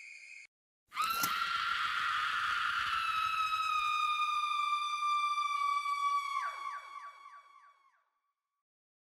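A young woman shrieks loudly into a microphone in a long high-pitched note that wavers at the end.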